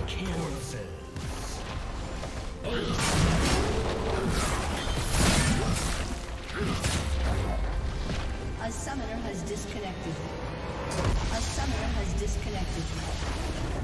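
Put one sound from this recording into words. Game spell effects burst and crackle.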